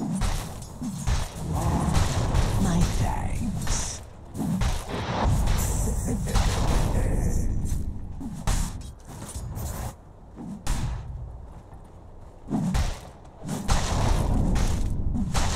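Magical blasts crackle and boom in quick bursts.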